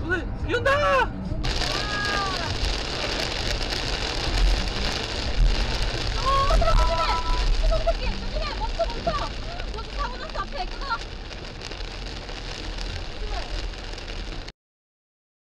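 Heavy rain drums on a car's windshield.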